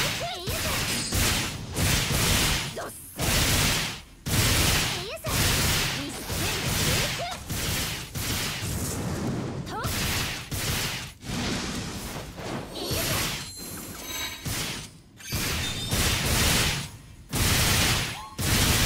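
Weapons clash and magic effects burst in loud, repeated bursts of combat noise.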